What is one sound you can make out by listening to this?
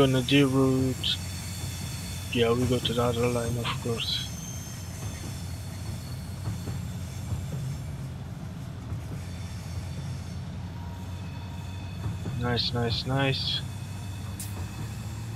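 A train's motor hums steadily as it rolls along the track.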